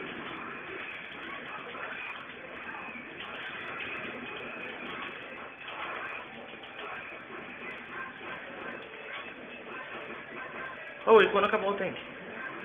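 Video game fight sounds play from a television speaker.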